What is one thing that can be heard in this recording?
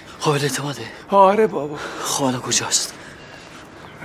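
A man speaks loudly and with agitation nearby.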